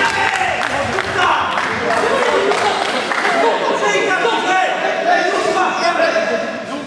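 Men shout and call out across a large echoing hall.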